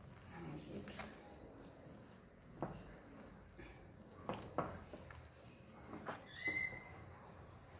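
Hands knead and squish crumbly dough in a glass bowl.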